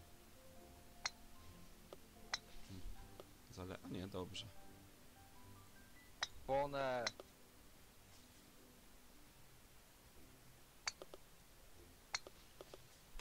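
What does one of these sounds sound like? A golf ball is putted with a soft click.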